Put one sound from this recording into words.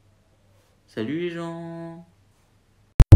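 A young man draws out a long sung note.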